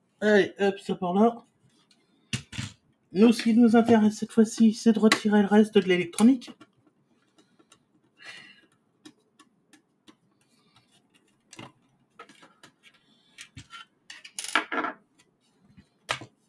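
Plastic parts click and clatter as hands handle a casing.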